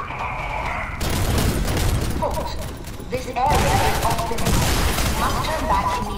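A pistol fires a series of sharp gunshots.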